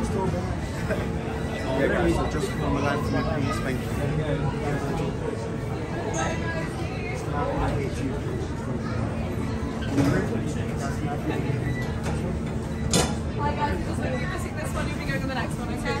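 A man speaks calmly to a group close by.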